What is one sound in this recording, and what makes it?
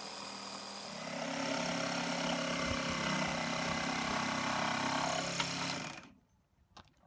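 A power drill whirs steadily.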